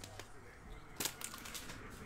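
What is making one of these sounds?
A foil card pack crinkles as it is handled.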